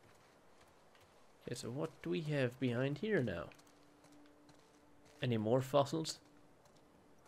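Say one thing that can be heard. Footsteps patter softly on a hard floor.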